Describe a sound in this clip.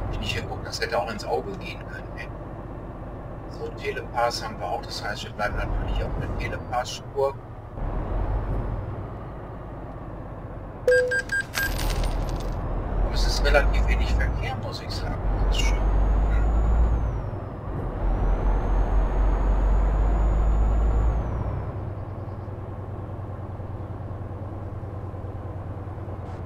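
A truck engine rumbles low, rising and easing as the truck speeds up and slows down.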